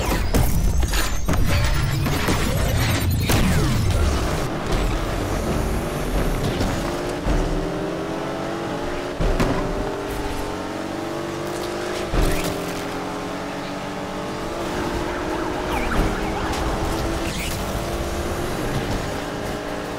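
A sports car engine revs hard and roars as it accelerates.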